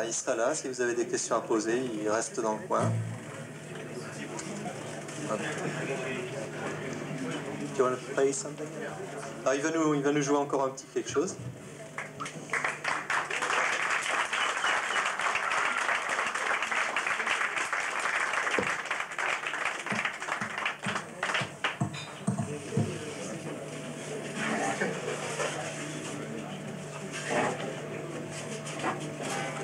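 An electric bass guitar plays through an amplifier.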